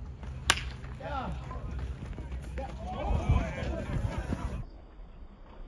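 Players cheer and shout from a distance.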